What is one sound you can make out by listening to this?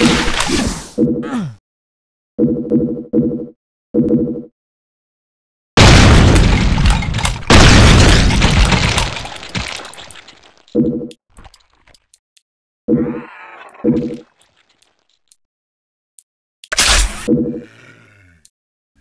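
Short electronic pickup chimes sound several times.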